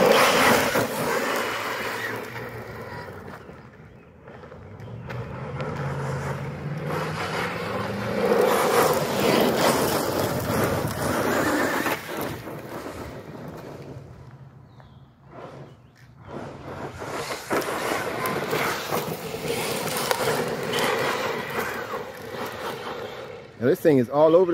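A small electric motor whines as a toy car speeds over rough pavement.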